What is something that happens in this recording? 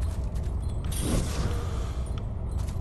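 A magical burst whooshes and crackles.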